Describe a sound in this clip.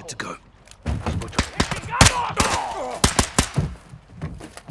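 Rapid gunshots crack sharply.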